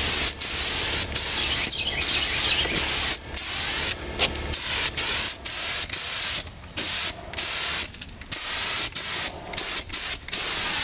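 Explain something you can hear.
A spray gun hisses loudly in repeated bursts with short pauses between them.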